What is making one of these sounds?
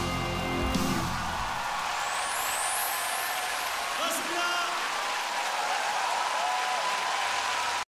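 A large crowd cheers and claps loudly in a big hall.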